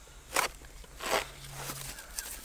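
A knife cuts through plant material.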